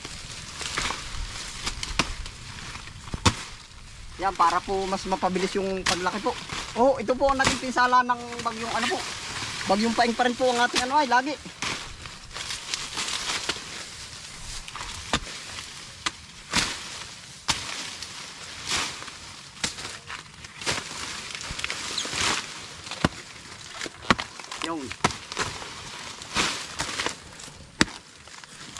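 Dry banana leaves rustle and crackle as they are dragged and piled.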